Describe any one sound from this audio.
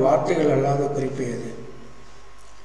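A man speaks calmly into a close microphone, then falls silent.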